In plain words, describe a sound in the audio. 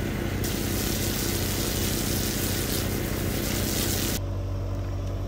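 Water sprays from a garden hose nozzle onto a carcass.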